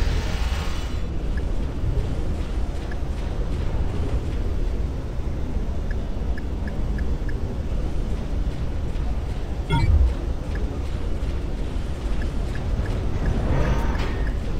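Soft interface clicks sound as menu options are selected.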